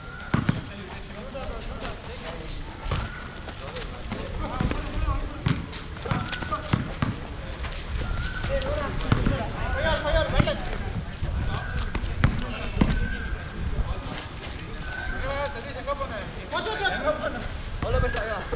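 Young men call out and shout to each other during a game.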